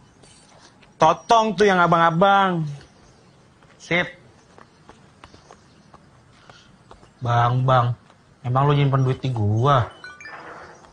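A man speaks firmly, nearby.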